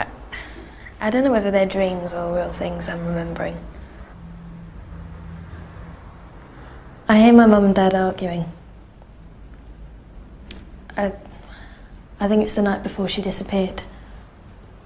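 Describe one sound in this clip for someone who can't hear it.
A young woman speaks softly in short bursts, close by.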